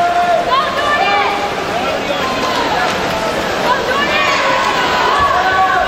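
A crowd cheers and whistles loudly in an echoing hall.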